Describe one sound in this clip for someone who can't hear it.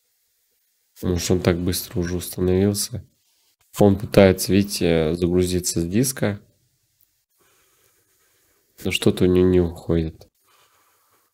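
A young man talks calmly and close to a microphone, in short bursts.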